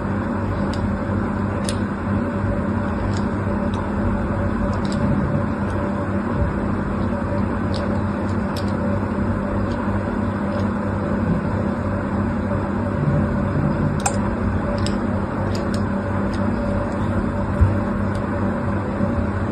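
A thin wire slices through soft soap with faint, crisp scraping clicks.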